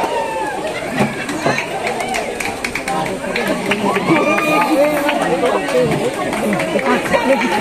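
A crowd of people cheers and chatters nearby.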